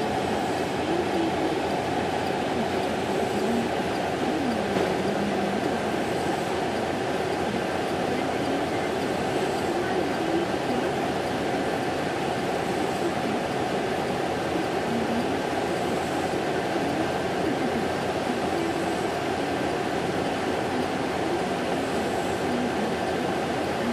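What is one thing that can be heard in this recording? A heavy transporter engine rumbles steadily.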